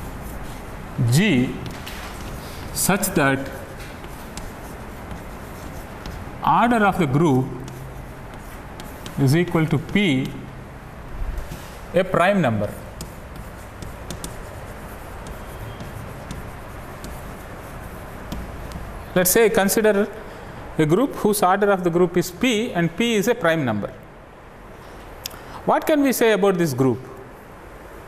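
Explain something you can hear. A man speaks slowly and calmly, as if lecturing.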